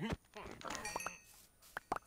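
A pig grunts close by.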